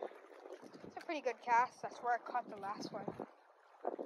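A fishing reel whirs as line is wound in.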